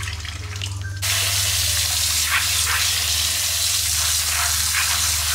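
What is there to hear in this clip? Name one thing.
Water runs from a tap into a metal sink.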